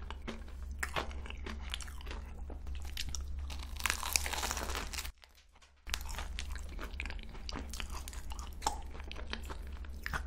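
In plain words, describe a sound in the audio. A young woman chews crunchy pastry close to a microphone, with wet, crisp mouth sounds.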